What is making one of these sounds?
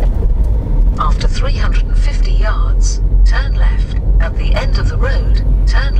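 A young woman talks calmly inside the car.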